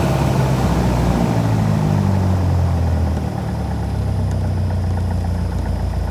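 A small plane's engine drops in pitch as it throttles down, then settles into a steady idle.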